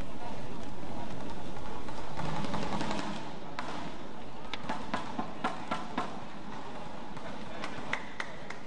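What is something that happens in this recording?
A crowd murmurs softly in a large hall.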